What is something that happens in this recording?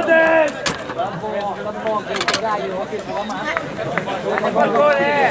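A man talks excitedly close by, outdoors.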